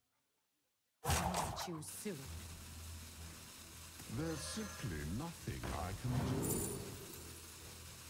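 Game effects chime and whoosh.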